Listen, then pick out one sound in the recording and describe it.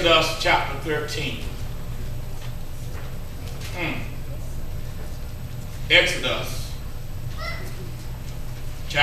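A man speaks slowly and deliberately through a microphone in an echoing room.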